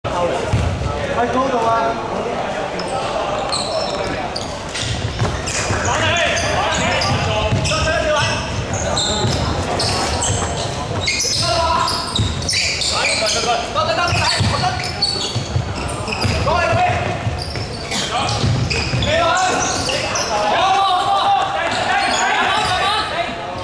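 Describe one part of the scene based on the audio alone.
A basketball bounces on a hard floor, echoing in a large hall.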